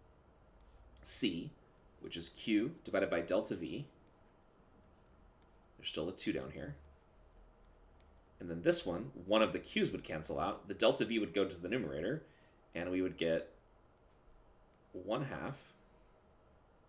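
A man explains calmly through a close microphone, in short bursts with pauses.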